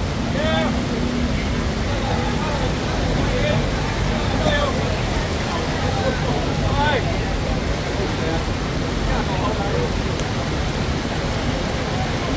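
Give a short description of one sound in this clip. Rain patters steadily on a wet street outdoors.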